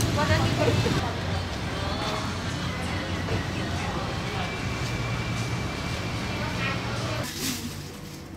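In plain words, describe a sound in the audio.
Voices of men and women chatter in a busy outdoor market.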